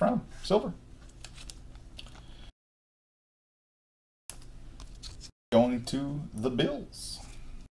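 Trading cards rustle and click as they are handled.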